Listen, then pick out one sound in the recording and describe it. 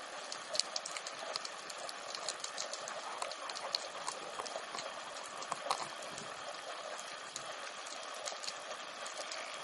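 A diver's fins swish through the water, heard underwater.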